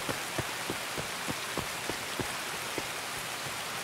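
Footsteps crunch quickly over grass and undergrowth.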